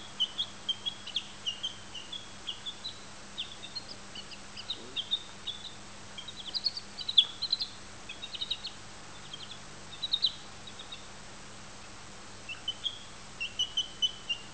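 A baby chick cheeps in high, quick peeps close by.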